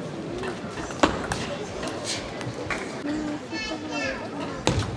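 A table tennis ball clicks sharply off paddles and the table in a large echoing hall.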